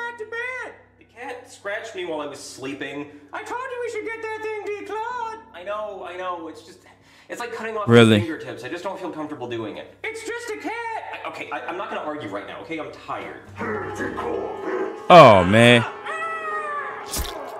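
A young man speaks in a silly high-pitched puppet voice.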